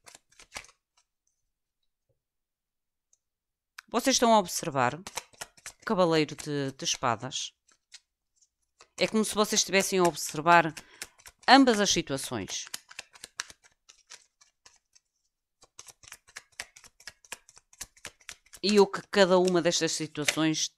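Cards riffle and slap as a deck is shuffled.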